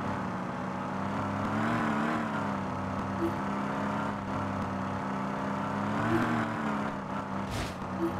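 Tyres hum on the road at high speed.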